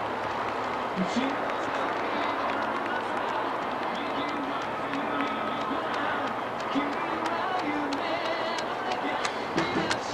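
A woman cheers loudly nearby.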